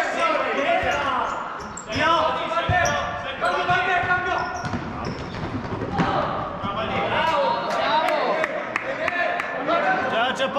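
Players shout to each other across a large echoing hall.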